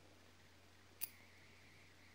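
Small clippers snip a thread with a single sharp click.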